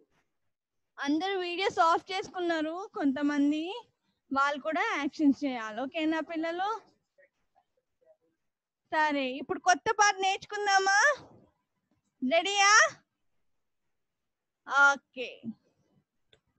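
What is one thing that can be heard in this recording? A young woman speaks into a microphone with animation, in short phrases separated by pauses.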